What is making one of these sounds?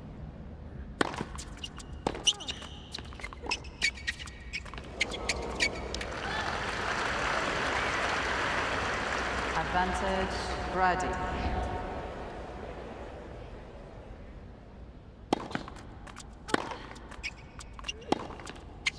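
A tennis racket strikes a ball back and forth in a rally.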